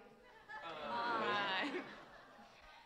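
An audience laughs together.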